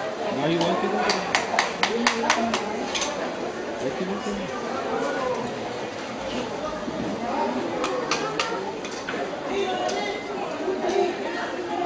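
Hard shells clink and tap as fingers handle them.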